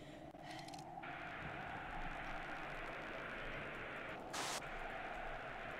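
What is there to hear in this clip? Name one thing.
A radio hisses with static as it is tuned.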